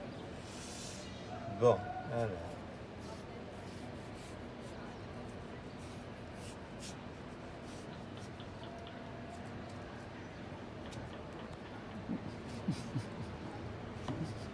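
A knife taps on a wooden board while slicing melon.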